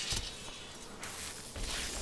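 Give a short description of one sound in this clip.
A fireball bursts with a roaring whoosh.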